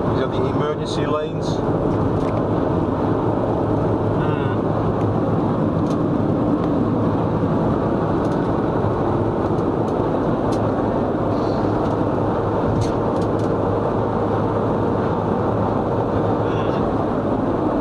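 A car drives steadily along a road, its engine and tyres humming.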